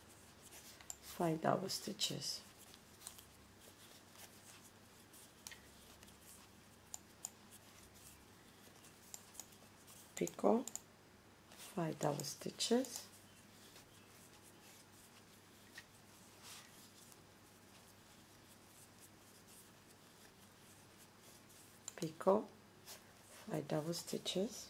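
Thread rustles softly as hands work it.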